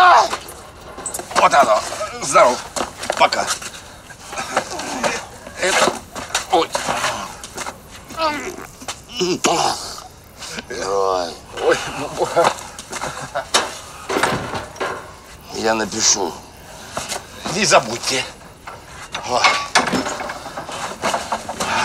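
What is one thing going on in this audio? A middle-aged man talks with emotion, close by.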